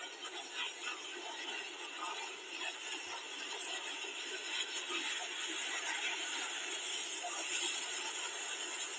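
Water rushes and roars steadily as it gushes out in a torrent.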